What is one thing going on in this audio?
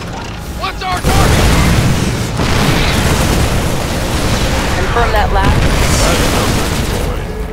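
Explosions boom in a game.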